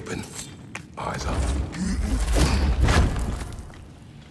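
A wooden chest bursts open with a heavy crash.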